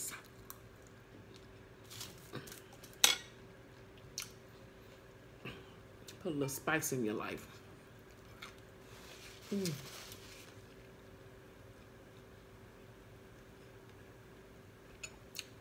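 A woman chews food with wet, crunchy sounds.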